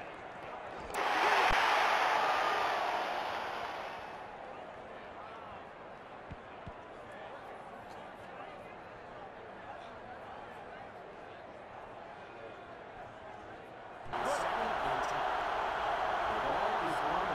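A stadium crowd cheers loudly, then fades.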